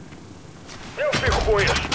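A machine gun turret hisses out a burst of steam.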